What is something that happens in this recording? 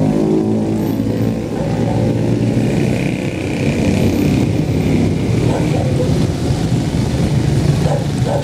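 Motorcycle tricycle engines rumble nearby.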